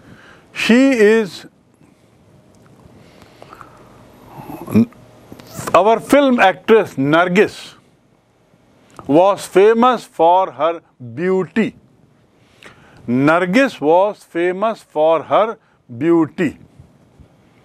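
A middle-aged man speaks calmly and clearly into a close microphone.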